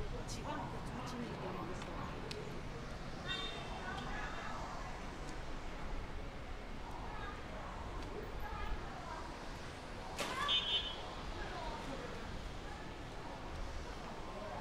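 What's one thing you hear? Voices of people walking by murmur on an outdoor street.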